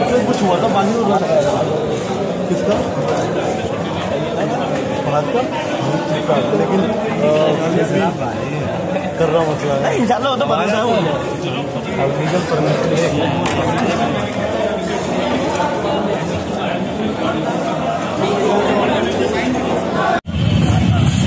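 A crowd of men chatters and talks over one another in a busy indoor hall.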